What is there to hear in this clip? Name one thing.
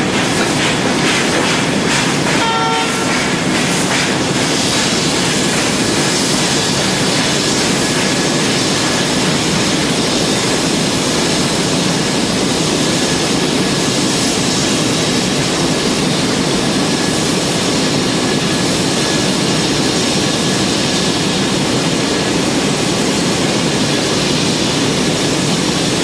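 A steam locomotive hisses loudly as steam escapes from its cylinders.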